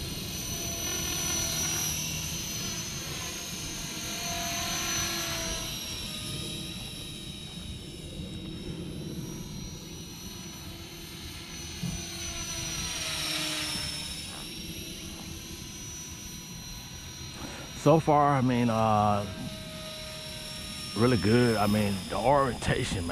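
A small drone whines steadily overhead, its pitch rising and falling as it moves.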